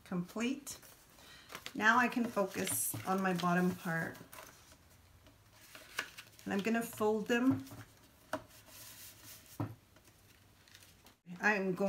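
Paper rustles as hands fold an envelope.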